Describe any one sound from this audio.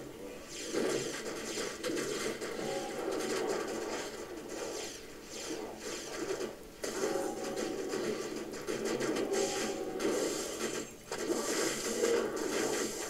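Electric spells crackle and zap steadily in a game.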